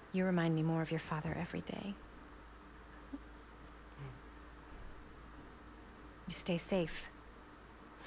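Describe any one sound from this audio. A woman speaks softly and warmly, close by.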